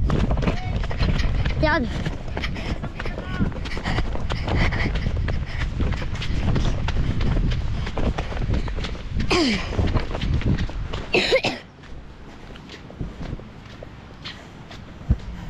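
A young boy talks with animation close by.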